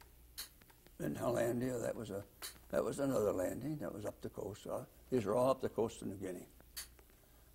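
An elderly man speaks slowly and hesitantly, close to a microphone.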